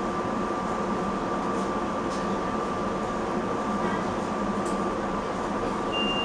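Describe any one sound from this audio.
A train's motor hums steadily while it idles.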